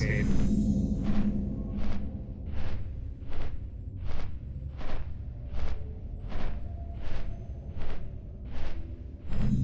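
Large wings beat with a steady, rhythmic whoosh.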